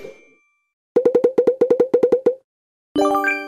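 A quick run of bright ticking chimes counts up a reward.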